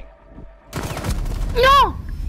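Gunshots crack loudly at close range.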